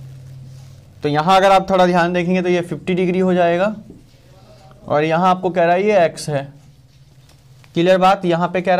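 A man explains at a steady pace, close to a microphone.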